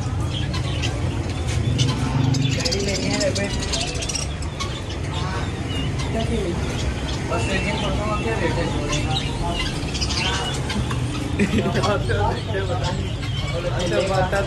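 Many small birds chirp and twitter nearby.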